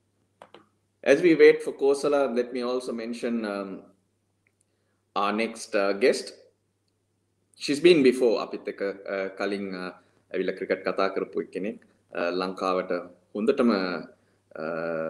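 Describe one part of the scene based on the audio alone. A man speaks calmly and close to a microphone, in short phrases.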